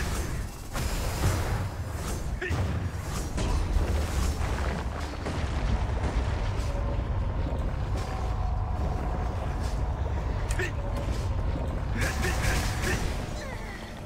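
Spell blasts and hits crackle and thump in a video game.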